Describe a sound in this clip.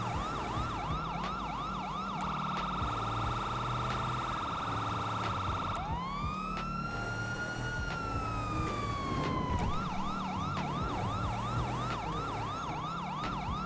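A car engine roars as it drives.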